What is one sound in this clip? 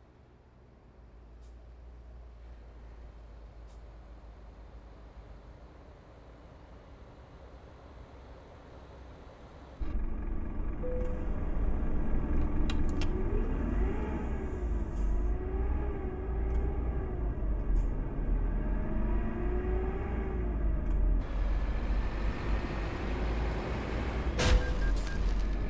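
A bus engine drones steadily.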